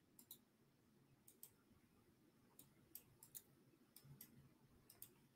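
A computer mouse clicks sharply several times.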